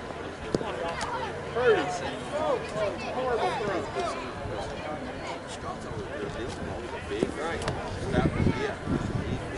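Men call out and shout across an open field.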